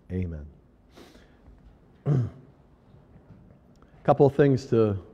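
An elderly man speaks in short, halting phrases, heard in a room with some echo.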